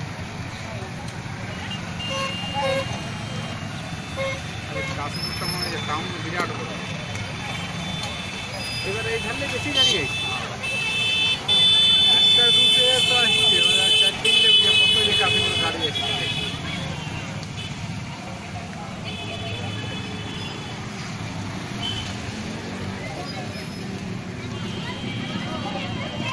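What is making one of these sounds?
A crowd chatters on a busy street outdoors.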